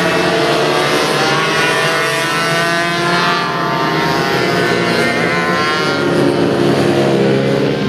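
Small racing motorbike engines whine loudly at high revs, rising and falling in pitch as they race past.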